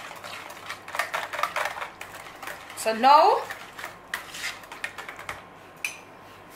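A whisk clinks and scrapes against a plastic bowl.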